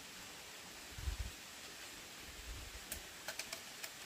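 Bamboo tubes knock and clatter.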